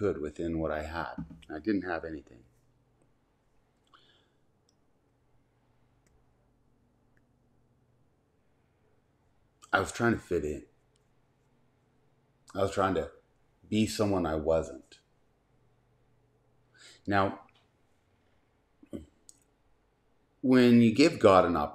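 A middle-aged man speaks calmly and close by, with pauses.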